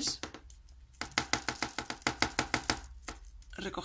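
Tiny plastic beads rattle and patter onto a hard surface.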